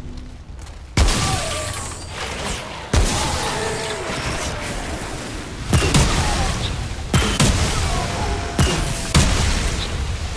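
Gunshots bang sharply, several times.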